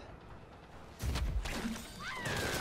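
A heavy blow lands with a thud.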